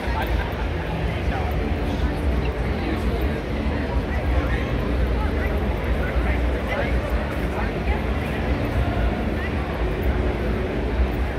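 A crowd chatters all around in a large echoing hall.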